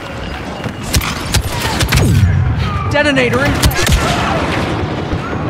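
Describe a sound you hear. Laser shots crack sharply against a wall.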